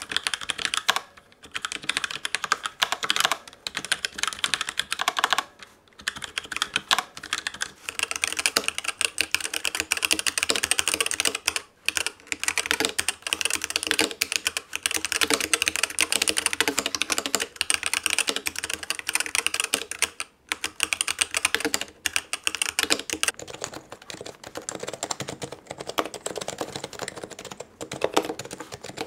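Fingers type quickly on a keyboard with rapid clicking keys.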